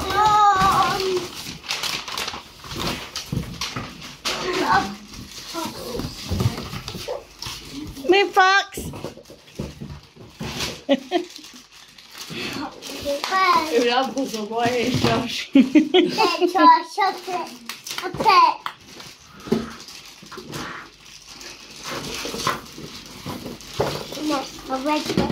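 Paper and plastic wrapping rustle and crinkle.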